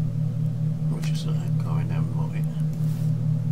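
A man speaks briefly into a microphone.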